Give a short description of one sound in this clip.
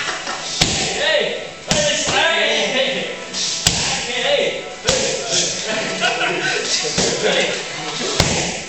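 Punches and kicks thud sharply against pads.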